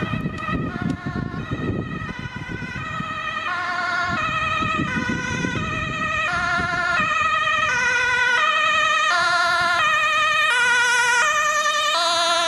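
An ambulance siren wails in two alternating tones, growing louder as it approaches.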